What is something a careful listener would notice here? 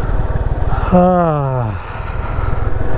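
A motorcycle engine revs briefly and then falls in pitch.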